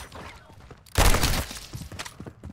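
A gun fires a single loud, sharp shot that echoes briefly.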